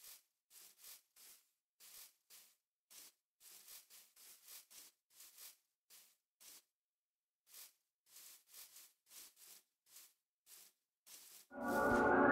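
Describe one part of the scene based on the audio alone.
Footsteps crunch softly over grass at a steady walking pace.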